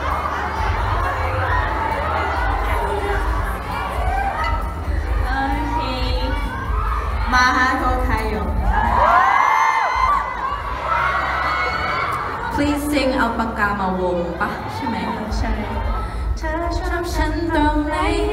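Young women speak into microphones over loudspeakers.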